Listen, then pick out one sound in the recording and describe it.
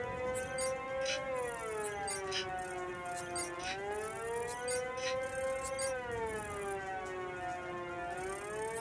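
Short electronic chirps and beeps repeat.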